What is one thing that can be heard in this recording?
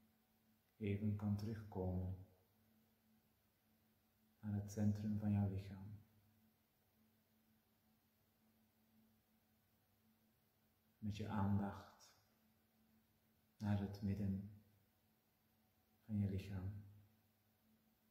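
A middle-aged man speaks calmly and slowly, close by, in short phrases with long pauses.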